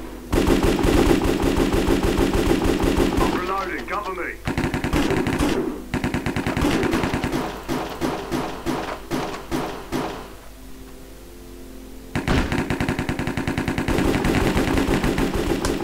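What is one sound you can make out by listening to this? Blocks crunch and break in quick succession.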